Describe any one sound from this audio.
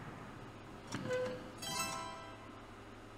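A short game chime rings out as the turn changes.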